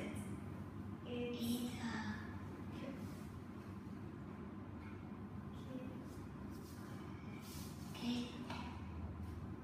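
A young child speaks softly close by.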